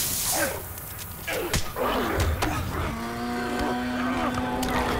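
A creature snarls and shrieks.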